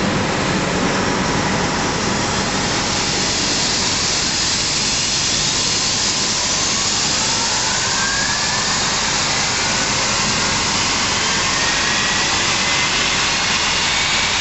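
A jet engine whines and roars loudly close by, its pitch slowly rising.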